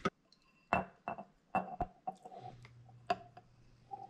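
Liquid pours and fizzes into a glass.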